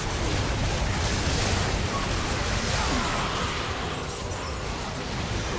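Spell effects crash and whoosh in a chaotic fantasy battle.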